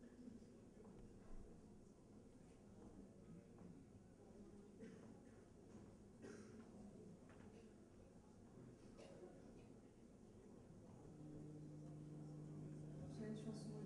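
A young woman sings softly into a microphone.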